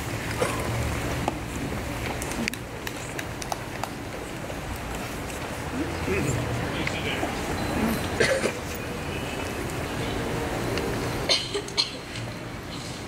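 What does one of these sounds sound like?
A seated crowd murmurs and shifts quietly.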